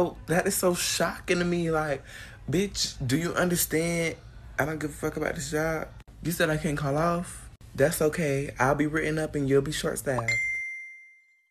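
A young woman talks with feeling, close to a phone microphone.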